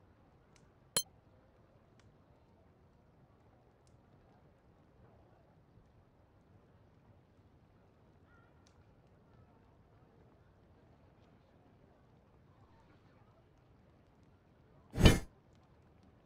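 A menu button clicks.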